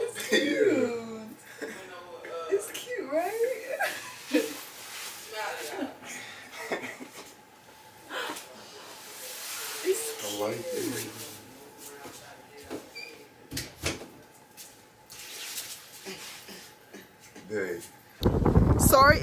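A young person talks and laughs nearby indoors.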